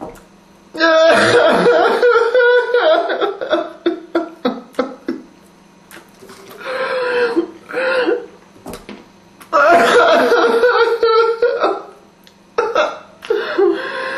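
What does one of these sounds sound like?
A young man groans and gasps loudly close by.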